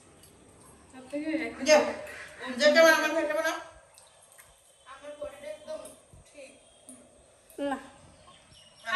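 Women talk close by with animation.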